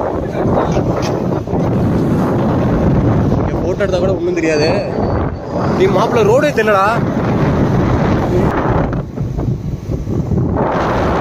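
Wind rushes and rumbles loudly past the rider.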